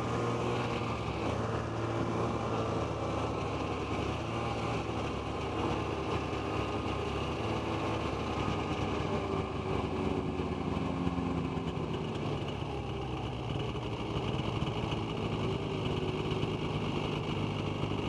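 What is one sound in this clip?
A snowmobile engine drones steadily up close.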